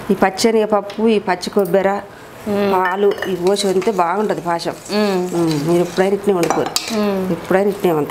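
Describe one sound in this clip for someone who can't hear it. A metal spoon scrapes and stirs inside a metal pot.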